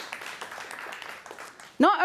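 A woman speaks calmly through a microphone in a large hall.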